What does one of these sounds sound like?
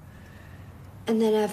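A young girl speaks quietly.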